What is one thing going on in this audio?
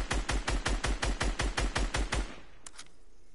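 A rapid burst of automatic gunfire rattles.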